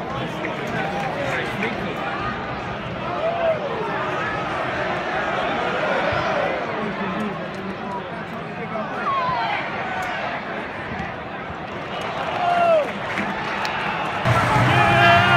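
A large stadium crowd sings and chants outdoors.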